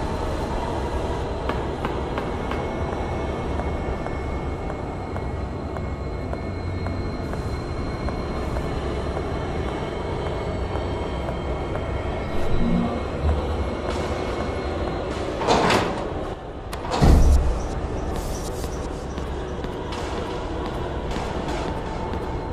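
Footsteps tread slowly on a hard stone floor.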